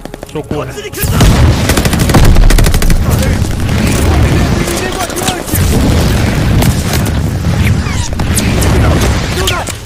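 Explosions rumble loudly.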